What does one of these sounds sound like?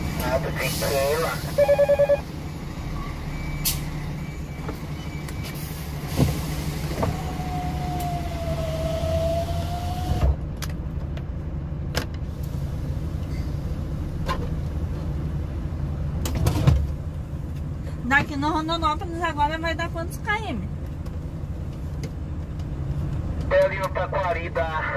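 A truck engine idles nearby with a low, steady rumble.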